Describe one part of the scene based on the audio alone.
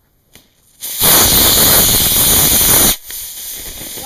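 A model rocket motor ignites with a loud, rushing roar.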